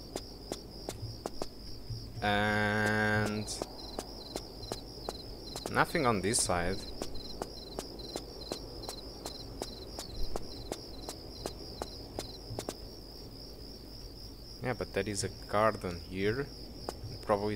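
Quick footsteps patter on stone paving.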